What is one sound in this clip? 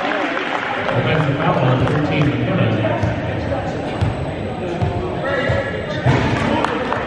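A ball bounces on a wooden court.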